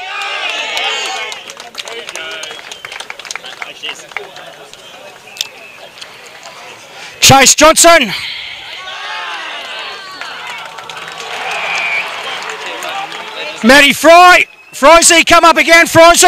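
A crowd outdoors cheers and chatters.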